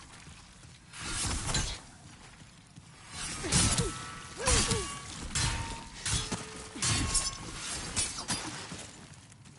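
Metal weapons clash and strike with sharp impacts.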